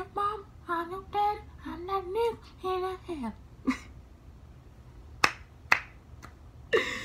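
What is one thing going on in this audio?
A young woman sings softly close to the microphone.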